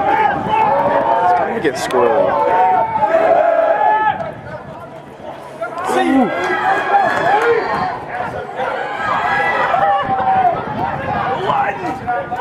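Players shout and call out to each other across an open field outdoors.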